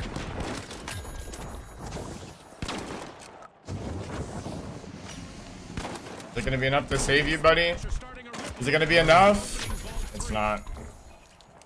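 A weapon fires in sharp bursts.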